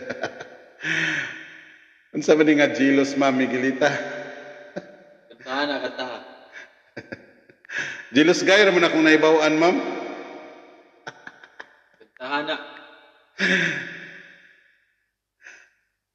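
A middle-aged man sings close to a microphone, with a heavy echo trailing each phrase.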